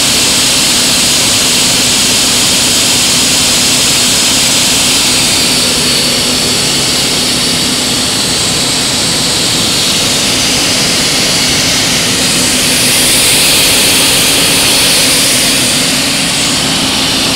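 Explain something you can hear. Water rushes and swirls loudly through a pipe.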